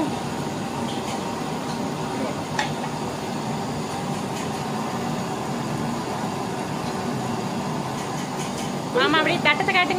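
A metal ladle scrapes against a metal pot.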